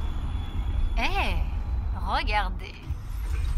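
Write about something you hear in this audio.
A woman exclaims with a rising and falling voice.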